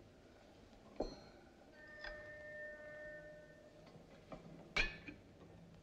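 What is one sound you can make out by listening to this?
A spoon clinks against a china cup.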